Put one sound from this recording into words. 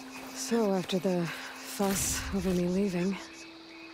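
Leaves rustle as plants are picked.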